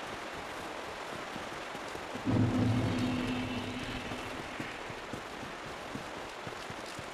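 Armoured footsteps thud softly on stone and grass.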